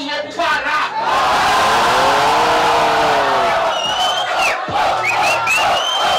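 A crowd cheers and roars loudly outdoors.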